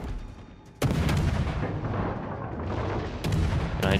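Shells explode against rock with a loud blast.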